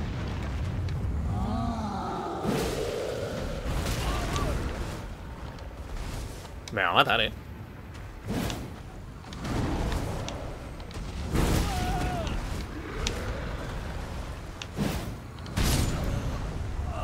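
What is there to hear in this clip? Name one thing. A giant creature roars and growls.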